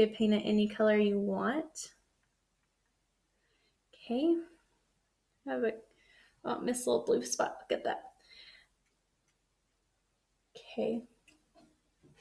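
A young woman talks calmly and close to a microphone, pausing between phrases.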